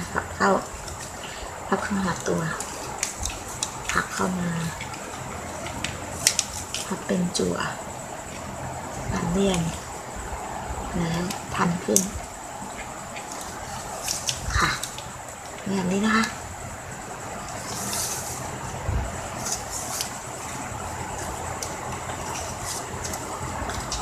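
Plastic ribbon rustles and crinkles as hands fold it.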